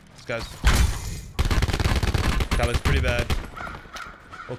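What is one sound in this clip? Gunshots crack loudly in bursts.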